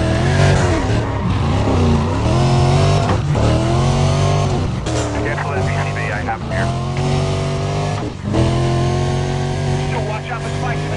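A sports car engine roars at high revs, rising and falling as gears shift.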